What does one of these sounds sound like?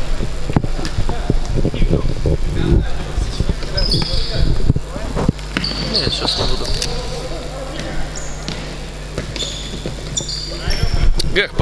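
A ball thuds on a wooden floor as players kick it.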